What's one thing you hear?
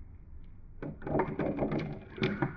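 Marbles clack and roll down a cardboard spiral.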